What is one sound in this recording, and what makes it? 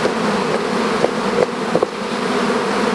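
A wooden hive frame knocks and scrapes as it is lifted.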